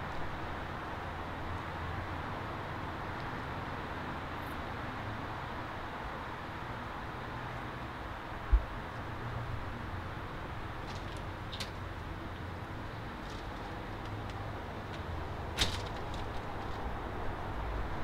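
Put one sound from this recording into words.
Footsteps walk up to a door.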